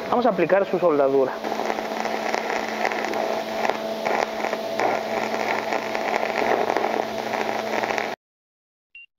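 An electric welding arc crackles and sizzles up close.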